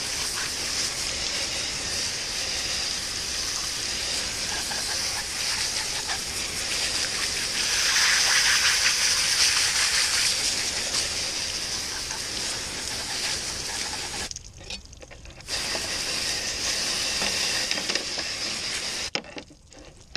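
A garden hose sprays water hard onto a board and splashes.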